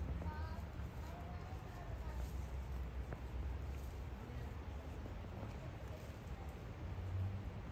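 Wind blows outdoors and rustles leaves in the trees.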